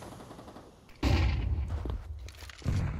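A flash grenade bangs loudly.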